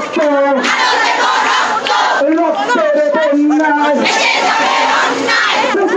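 A crowd of women chants slogans loudly outdoors.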